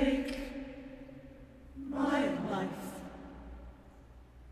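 A choir sings a held chord in a large echoing hall.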